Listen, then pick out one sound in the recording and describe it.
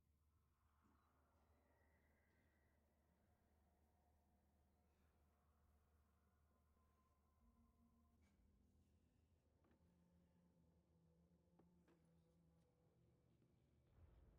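Eerie music plays softly with low, drawn-out tones.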